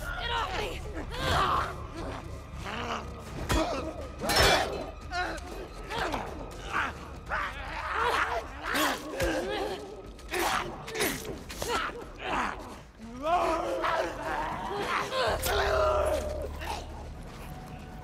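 A young woman grunts and cries out as she struggles.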